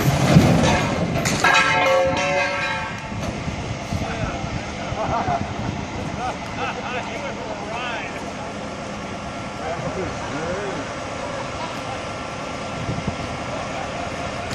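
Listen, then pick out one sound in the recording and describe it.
A heavy truck engine rumbles steadily outdoors.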